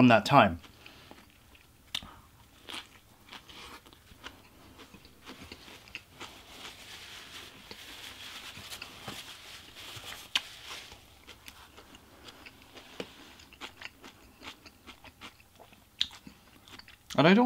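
A young man chews and munches food noisily up close.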